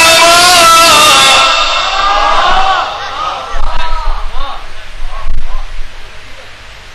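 A man chants in a long, wavering voice close to a microphone.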